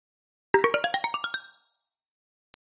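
A bright chime jingles with a quick rising run of notes.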